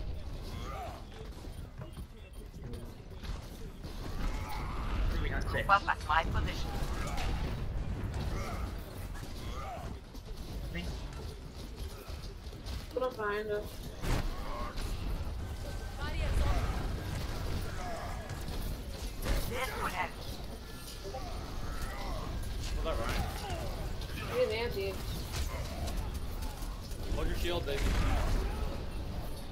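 Gunfire and explosions crackle and boom.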